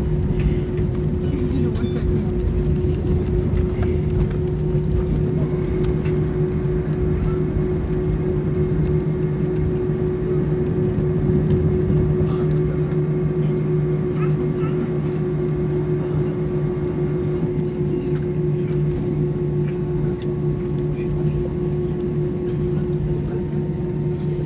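Jet engines roar steadily from inside an airliner cabin.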